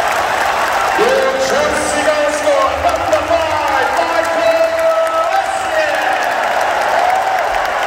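Fans sing together loudly in a large open stadium.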